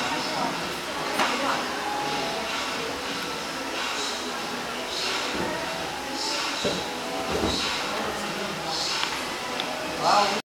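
Many voices chatter in a large echoing hall.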